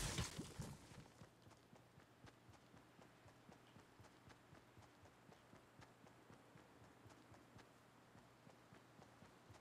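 Footsteps patter quickly on grass and ground.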